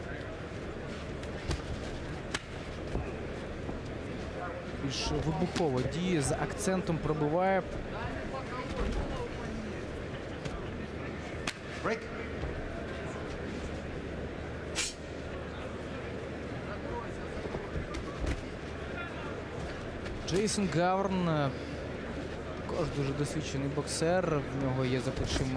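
Boxing gloves thud against a body.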